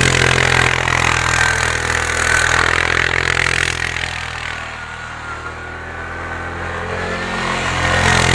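Tyres spin and churn through snow.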